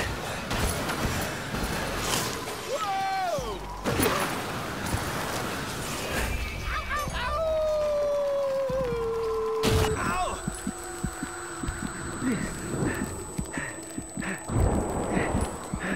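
A snowboard hisses and scrapes over snow.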